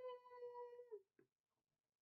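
A young man sings a long, held note close to a microphone, then stops.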